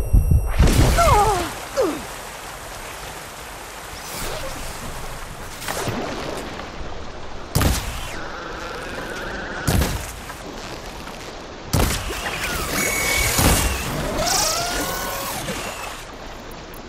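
A mechanical creature screeches and whirs.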